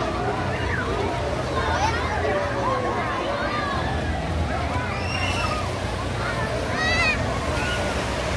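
Waves splash in a pool.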